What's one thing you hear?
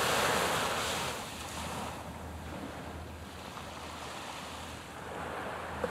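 A large ship's engine rumbles low and steady across the water.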